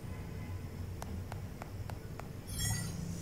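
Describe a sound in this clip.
A wrist device clicks several times as buttons are tapped.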